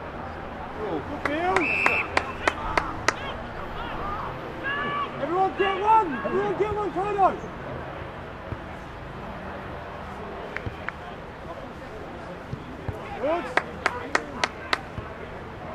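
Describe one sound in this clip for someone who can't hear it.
Young men shout to each other across an open field, outdoors.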